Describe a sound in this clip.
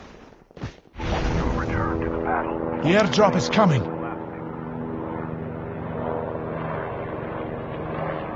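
An aircraft engine roars steadily.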